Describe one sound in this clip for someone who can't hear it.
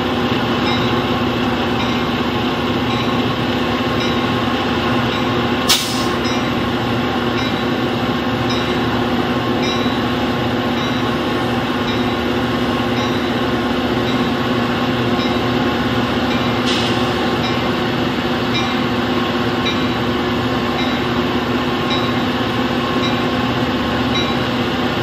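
A train rumbles steadily past close by.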